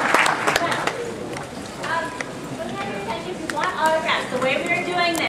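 Several men and women in a crowd chat nearby.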